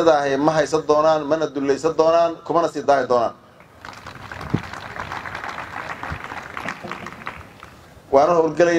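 A man speaks calmly into a microphone, heard through a loudspeaker.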